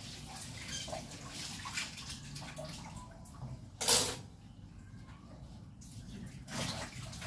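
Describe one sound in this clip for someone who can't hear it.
Dishes clatter and clink in a sink.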